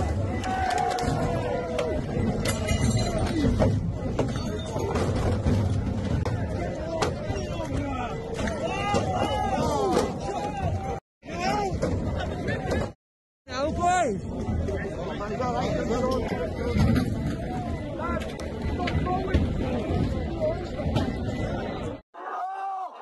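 A crowd of men shout and jeer outdoors.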